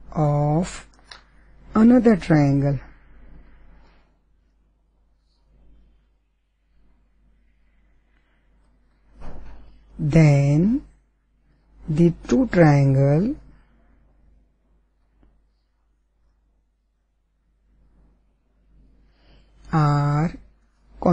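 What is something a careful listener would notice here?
An older woman speaks slowly and clearly into a close microphone, with long pauses.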